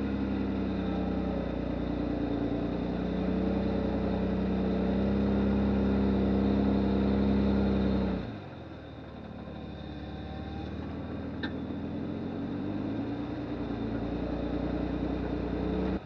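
A vehicle engine hums steadily close by, dropping lower as the vehicle eases off and then rising again.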